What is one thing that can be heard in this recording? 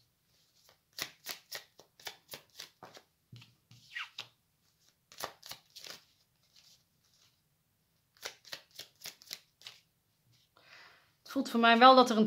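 Playing cards tap and slide softly on a table.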